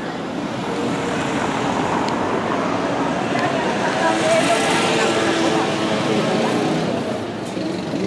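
A motor scooter drives past.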